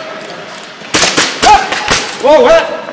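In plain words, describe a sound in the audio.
Airsoft guns fire in quick bursts of sharp cracks in a large echoing hall.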